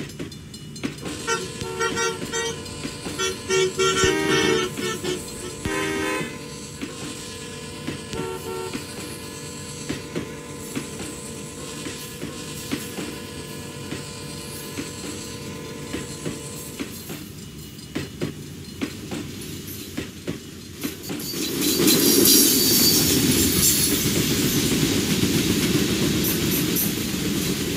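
Train wheels click rhythmically over rail joints.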